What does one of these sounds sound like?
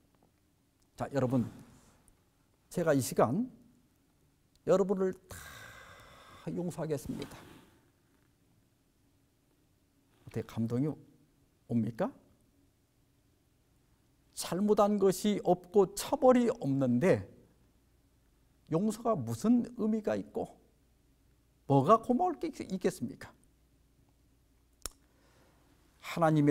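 A middle-aged man speaks expressively into a close microphone, in short phrases with pauses.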